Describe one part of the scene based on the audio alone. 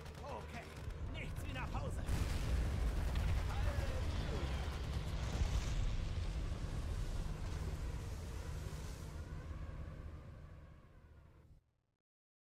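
Explosions rumble over the sea.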